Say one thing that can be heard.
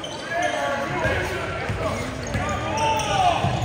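A basketball bounces in steady dribbles on a hard floor.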